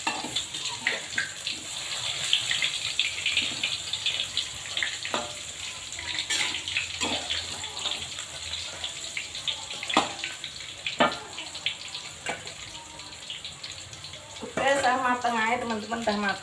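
Food sizzles as it fries in hot oil.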